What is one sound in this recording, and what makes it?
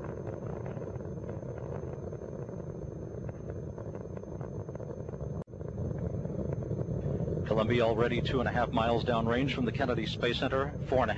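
Rocket engines roar with a deep, steady rumble.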